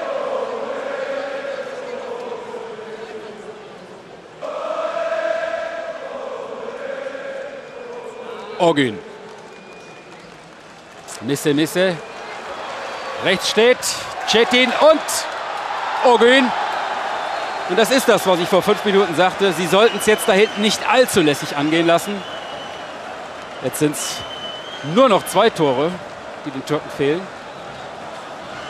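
A large stadium crowd chants and roars.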